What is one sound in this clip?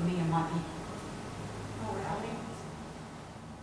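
A woman speaks through a microphone in a hall.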